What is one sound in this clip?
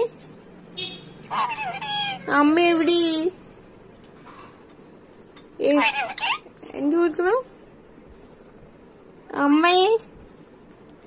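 A parrot screeches loudly in short, shrill bursts close by.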